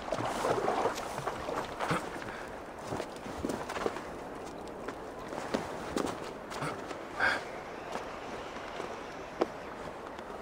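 Hands and feet scrape and thud on rock while climbing.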